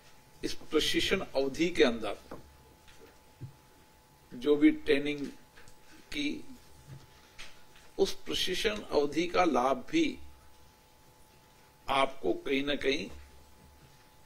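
A middle-aged man speaks calmly into a microphone in short bursts with pauses.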